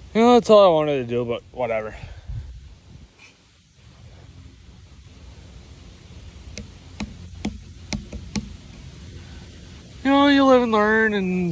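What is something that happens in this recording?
A young man talks close to a microphone with animation.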